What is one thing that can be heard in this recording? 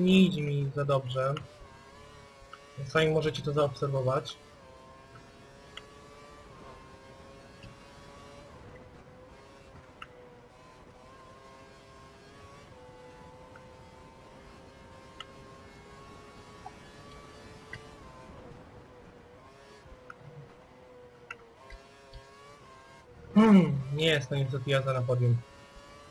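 A racing car engine whines steadily at high speed, shifting pitch through the corners.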